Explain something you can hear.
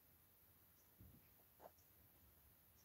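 A brush taps lightly against a palette.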